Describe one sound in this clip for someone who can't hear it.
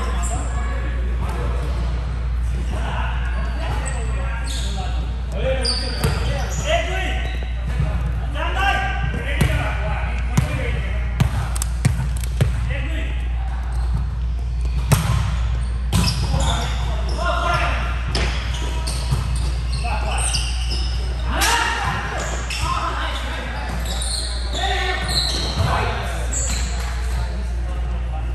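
Young men call out and talk to each other in a large echoing gym.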